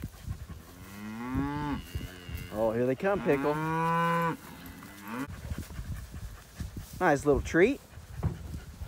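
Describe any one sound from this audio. Cows moo loudly nearby.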